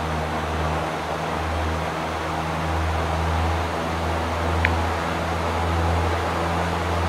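A small propeller plane's engine drones steadily with a low hum.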